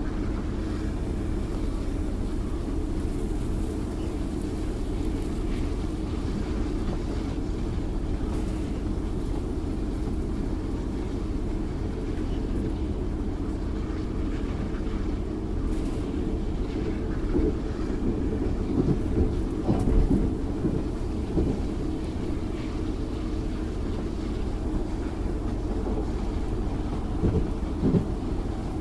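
A rail car rumbles steadily along a track.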